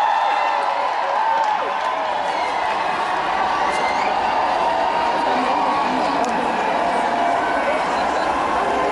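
A large crowd of marchers chants and shouts outdoors.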